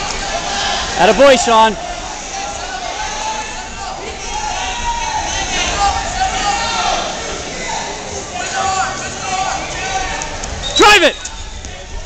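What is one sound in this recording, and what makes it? Spectators shout loudly across a large echoing hall.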